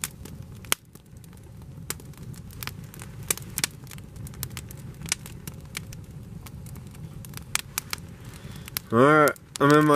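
A campfire crackles and pops close by.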